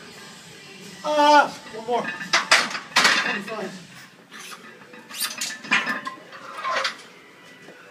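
A young man shouts with effort nearby.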